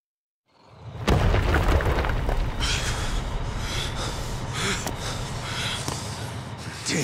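A heavy wrecking ball swings with a deep rumble.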